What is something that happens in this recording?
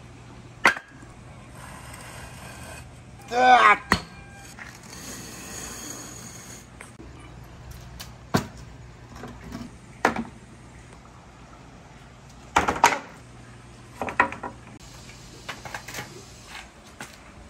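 Concrete blocks knock and scrape against each other.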